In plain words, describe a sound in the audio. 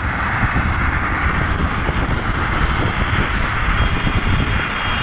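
Tyres hum on smooth pavement.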